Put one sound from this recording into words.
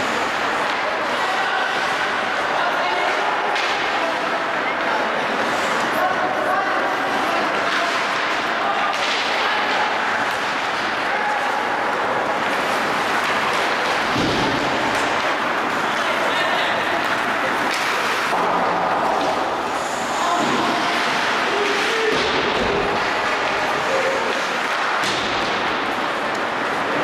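A crowd chatters and calls out in a large echoing arena.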